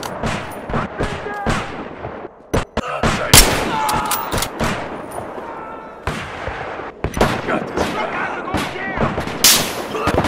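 Rifle shots crack repeatedly with sharp echoes.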